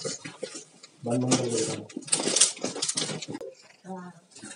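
Cardboard flaps rustle and thump.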